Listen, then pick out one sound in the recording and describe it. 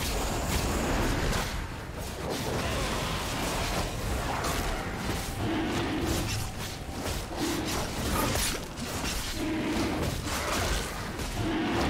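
Game spells and attacks crackle and burst in quick succession.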